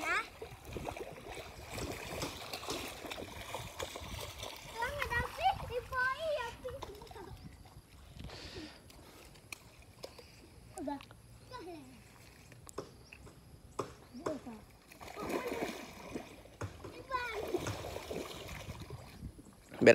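Young boys splash about in shallow water.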